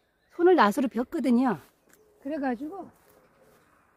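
A woman speaks with animation close by.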